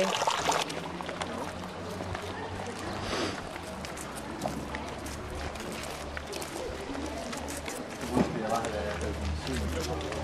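Footsteps crunch on cobblestones outdoors.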